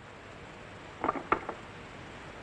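A telephone receiver clatters as it is picked up.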